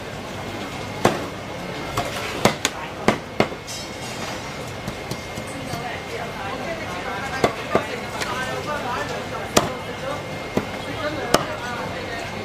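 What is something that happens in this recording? A cleaver chops sharply through meat onto a wooden block.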